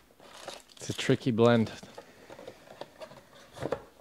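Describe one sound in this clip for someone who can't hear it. Cardboard scrapes as a box is handled and pulled open.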